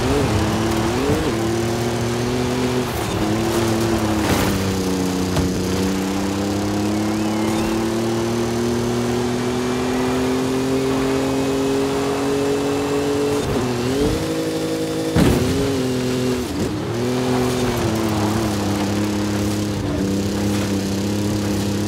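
A racing engine roars loudly, its pitch rising and dipping with gear shifts.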